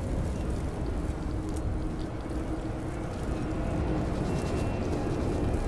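Machinery hums with a low, steady rumble.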